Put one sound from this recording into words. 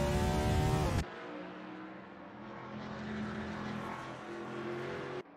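Several race car engines drone more quietly from a distance.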